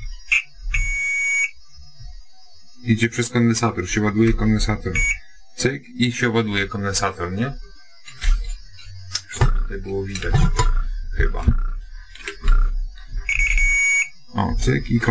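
A multimeter beeps in short steady tones.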